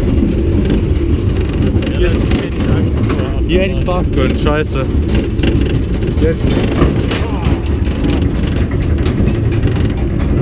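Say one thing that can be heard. A roller coaster car rattles and clatters along its track.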